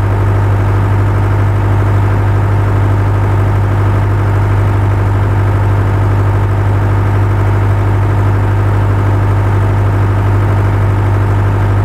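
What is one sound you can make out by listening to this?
A tractor engine drones steadily at a low, even pitch.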